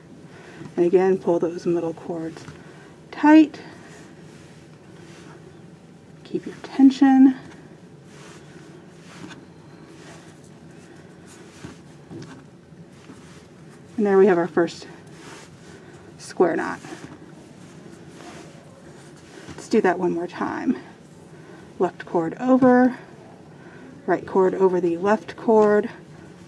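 A cord rustles and slides softly over a hard surface.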